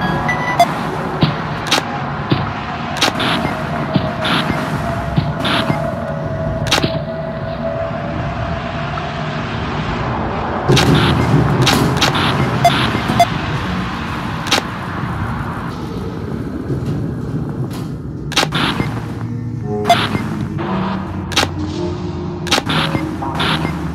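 Static hisses and crackles from a monitor.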